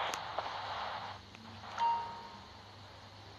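A door opens.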